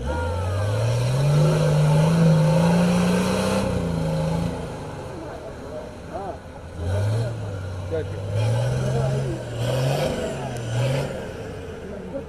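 An off-road vehicle's engine revs hard in bursts.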